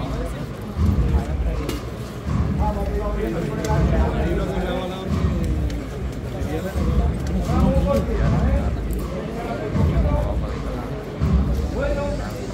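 A crowd of men and women murmurs and talks nearby.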